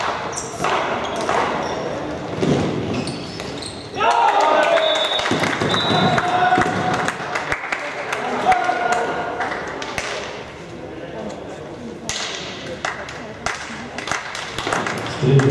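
Sticks clack against a ball in a large echoing hall.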